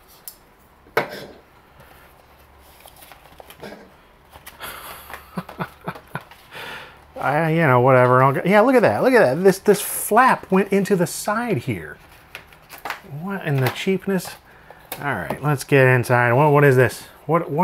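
A cardboard box rustles and scrapes as hands open and handle it.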